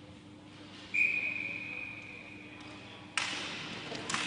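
A referee's whistle blows a short, sharp blast.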